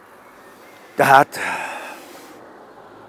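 An elderly man exclaims loudly.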